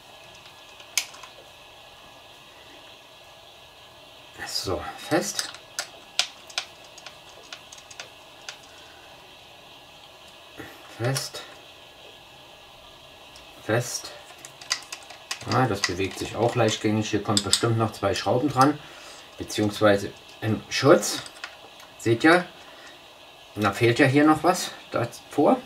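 Small plastic parts click and rattle as they are handled and fitted together.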